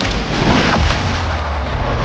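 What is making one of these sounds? A car crashes with a loud metallic bang.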